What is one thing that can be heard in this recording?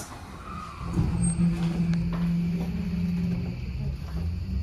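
A train's motor whines and hums as it pulls away.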